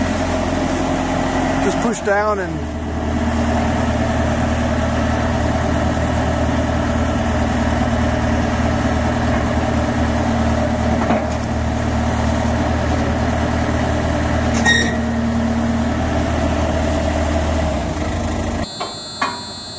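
A diesel engine idles steadily close by.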